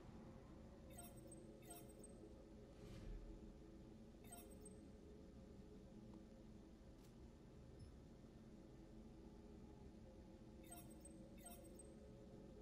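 Short menu clicks tick softly now and then.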